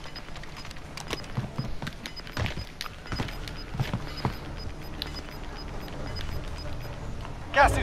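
Footsteps patter quickly on hard ground.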